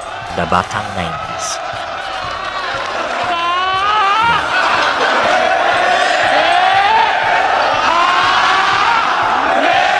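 A man shouts into a microphone through loudspeakers.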